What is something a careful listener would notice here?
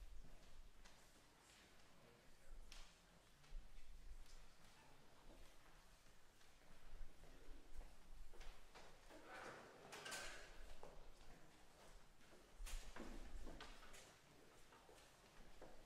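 Footsteps thud on a wooden stage.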